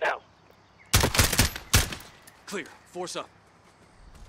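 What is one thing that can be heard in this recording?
A rifle fires several quick, loud shots.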